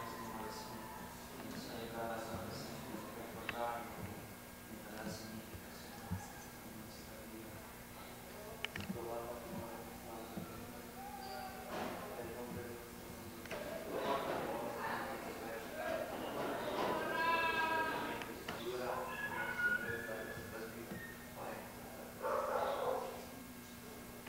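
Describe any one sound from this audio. Several men and women talk quietly among themselves nearby.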